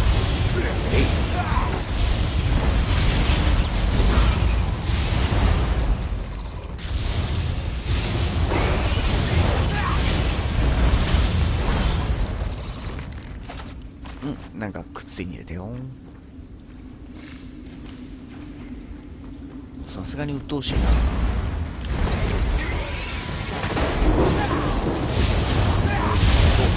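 Lightning spells crackle and boom in a fierce fight.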